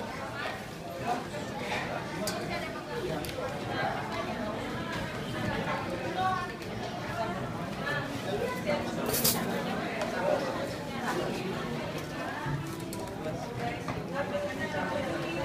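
A crowd of men and women chatters all around in a busy indoor hall.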